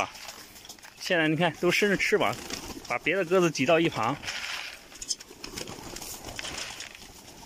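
Pigeons flutter and flap their wings close by.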